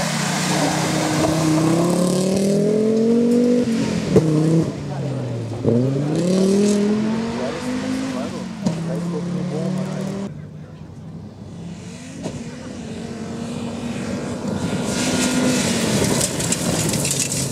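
Tyres crunch and spray gravel on a loose road.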